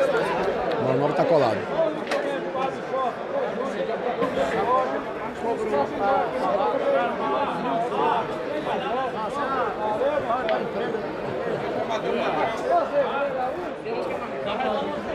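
A crowd of men chatters and calls out nearby.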